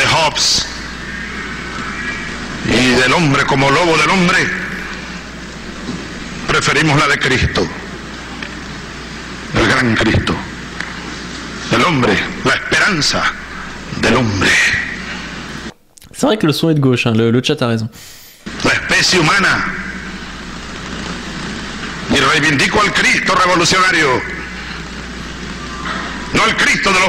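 A young man talks with animation into a close microphone, in short bursts with pauses.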